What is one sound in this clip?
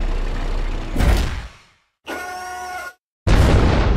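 A cannon fires a loud shot.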